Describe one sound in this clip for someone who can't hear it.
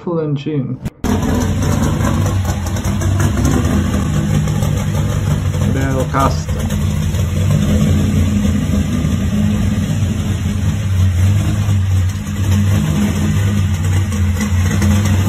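A car engine idles with a deep, lumpy rumble.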